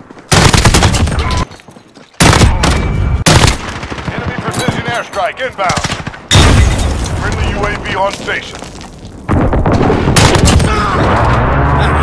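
A rifle fires bursts of rapid shots.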